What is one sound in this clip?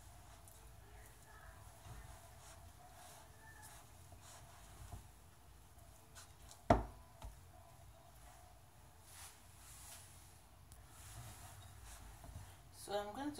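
Hands knead and squish soft dough in a glass bowl.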